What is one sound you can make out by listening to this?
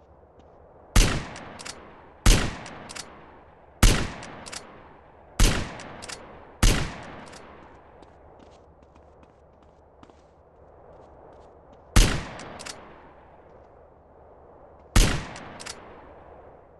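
A sniper rifle fires loud single shots that echo away, with a short clack after each.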